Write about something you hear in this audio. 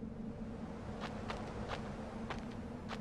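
Footsteps tread on a dirt floor.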